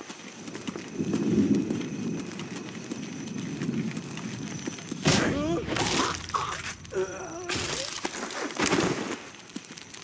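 A campfire crackles nearby.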